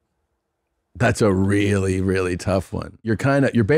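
A man speaks loudly and with animation close to a microphone.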